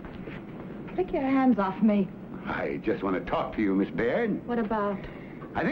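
A young woman speaks with concern, close by.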